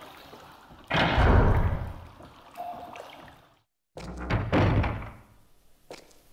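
A heavy wooden door creaks and bangs open.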